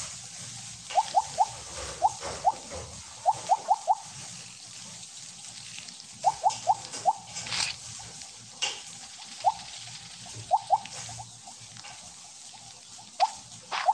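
Short rising game blips chirp in quick bursts as a snake eats pellets.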